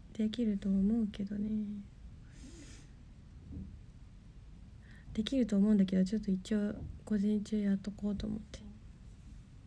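A young woman speaks softly and sadly, close to a microphone.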